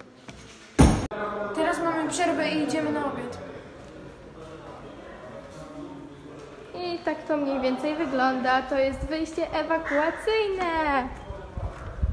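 A young boy talks close by with animation.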